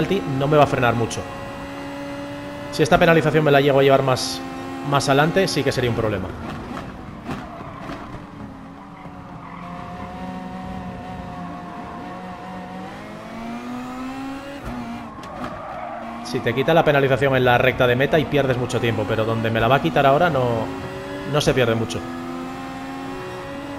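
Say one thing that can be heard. A racing car engine roars loudly, revving up and down through gear changes.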